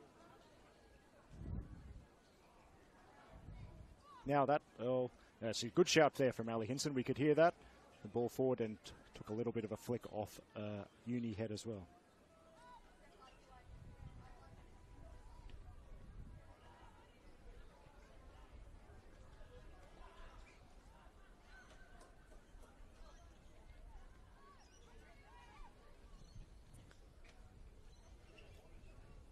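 Players call out faintly across an open field.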